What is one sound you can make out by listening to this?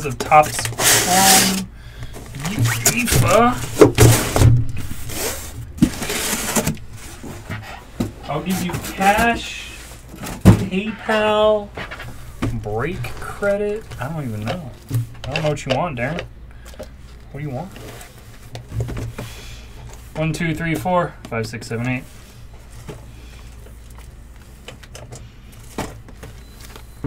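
Cardboard boxes rustle and knock as hands handle them.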